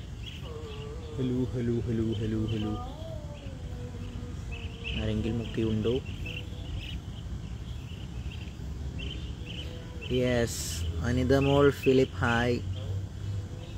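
A young man speaks close to the microphone in short, calm bursts.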